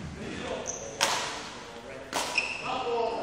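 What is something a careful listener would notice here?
A badminton racket sharply strikes a shuttlecock in an echoing hall.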